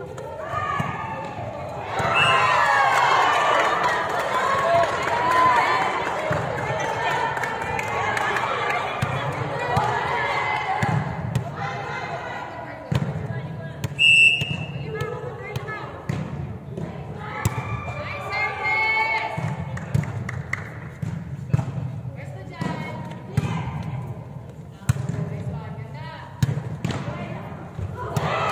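Young women shout and cheer loudly in a large echoing hall.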